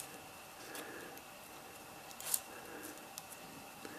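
A wooden stick pokes and scrapes softly in loose soil.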